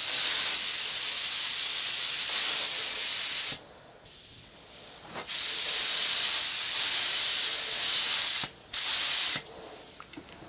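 A spray gun hisses loudly in bursts.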